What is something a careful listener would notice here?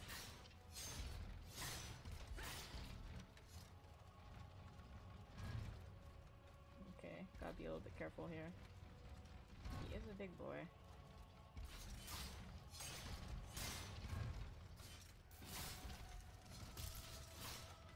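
Heavy weapons swing and strike with loud thuds and clangs.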